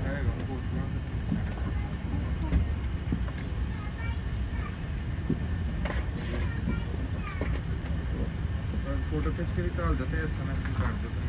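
A jet airliner taxis past with a low, steady engine rumble.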